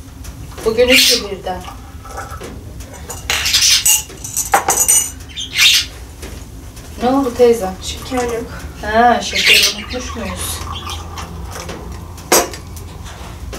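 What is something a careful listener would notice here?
Glass cups and plates clink on a table.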